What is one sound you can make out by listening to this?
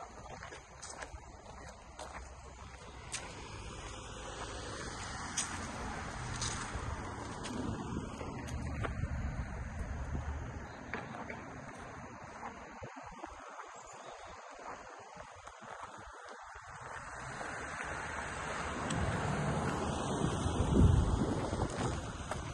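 Wind blows outdoors and rustles grass and leaves.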